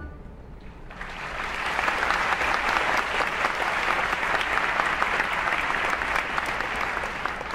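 A large crowd applauds and cheers loudly in a big hall.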